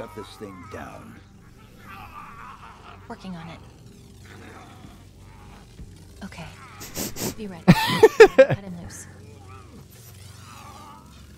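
A young man talks into a close microphone, with animation.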